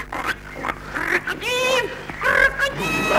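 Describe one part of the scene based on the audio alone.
A cockatoo screeches.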